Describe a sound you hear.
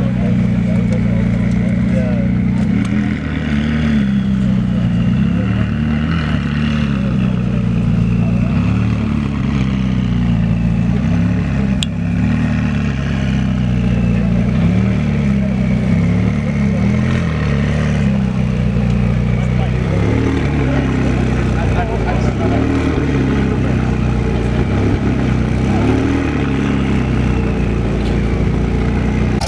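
A sports car engine idles with a deep, rumbling burble close by.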